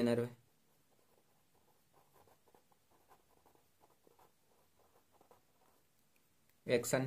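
A pen scratches as it writes on paper.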